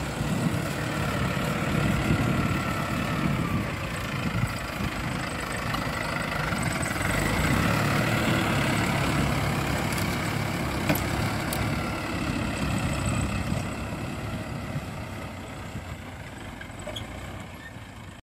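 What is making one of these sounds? A tractor engine rumbles steadily close by, then fades as it moves away.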